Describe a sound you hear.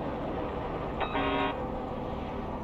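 A warning alarm beeps briefly.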